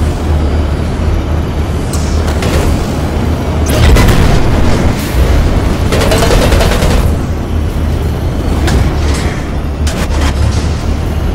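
A racing hovercraft's engine roars steadily at high speed.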